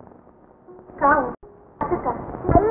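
A woman speaks through a loudspeaker with a narrow, old film sound.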